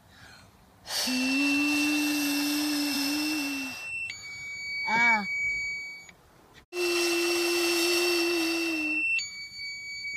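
A young girl blows hard and steadily into a handheld device.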